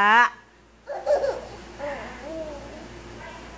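A toddler babbles softly close by.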